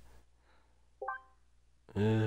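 A short menu chime plays.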